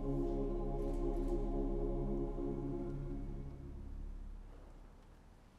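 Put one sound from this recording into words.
A choir and orchestra hold a final chord that rings out in a large echoing hall.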